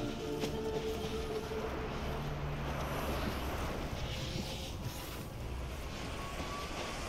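Footsteps scuff slowly across a hard floor.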